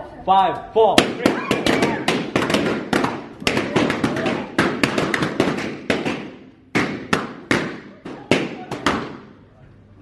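Balloons pop in quick bursts.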